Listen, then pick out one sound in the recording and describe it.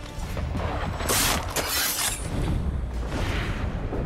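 A blade strikes an opponent with sharp thuds.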